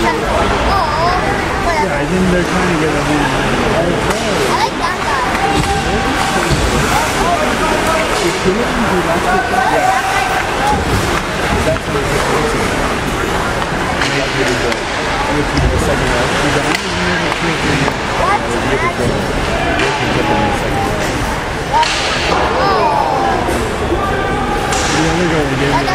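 A crowd of spectators chatters nearby in a large echoing hall.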